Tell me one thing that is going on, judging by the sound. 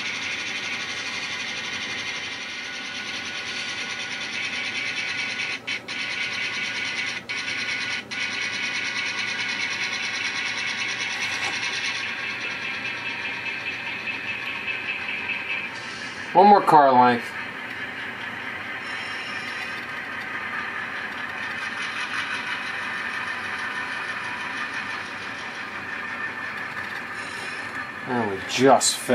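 An N-scale model diesel locomotive hums and rumbles as it pulls a freight train.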